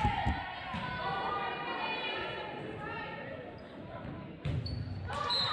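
A volleyball is struck with sharp smacks in a large echoing gym.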